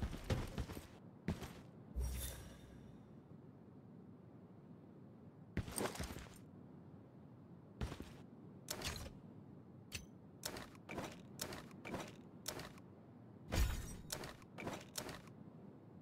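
Game menu clicks and item pickup sounds ring out in quick bursts.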